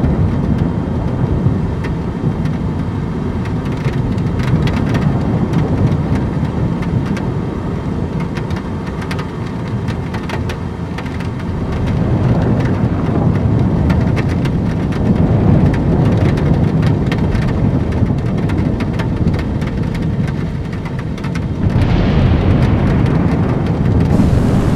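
A small propeller engine drones steadily.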